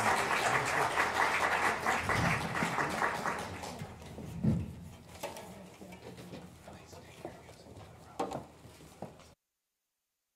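An audience applauds loudly in a large hall, then the clapping fades.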